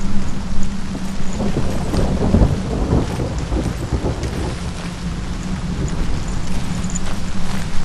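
Footsteps crunch on a stony path.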